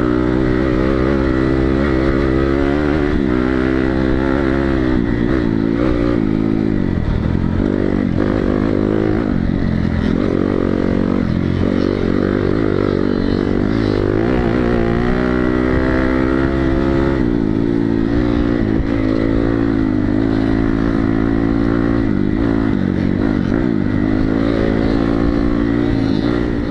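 A dirt bike engine roars up close, revving up and down as it rides.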